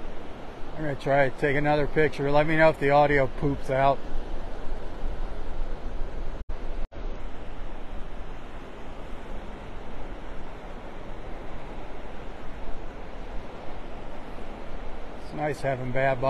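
Waves wash and break steadily on a shore.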